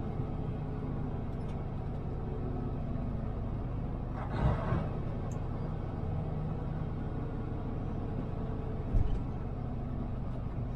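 Tyres roll over the road surface with a steady rumble.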